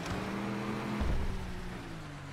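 A car jolts with a heavy thump over a bump.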